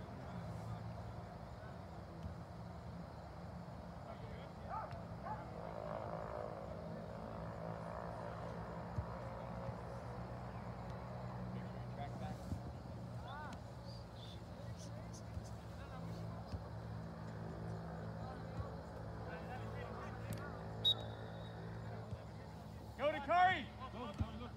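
Children shout and call out in the distance across an open field.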